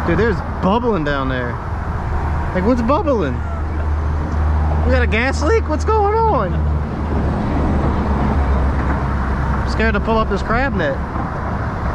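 An adult talks casually close by, in short bursts.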